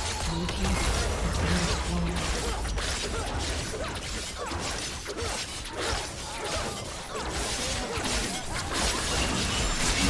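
Game spell effects crackle and clash in a fast fight.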